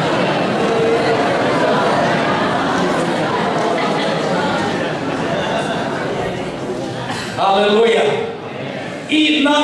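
A man speaks with animation into a microphone, heard over loudspeakers in an echoing hall.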